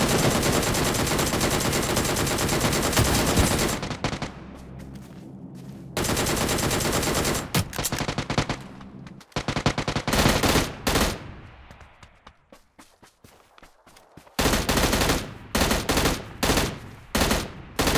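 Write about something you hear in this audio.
Rifle shots fire in loud bursts.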